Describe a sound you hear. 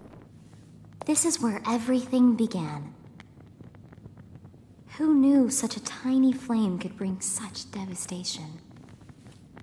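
A young woman speaks softly and calmly, close by.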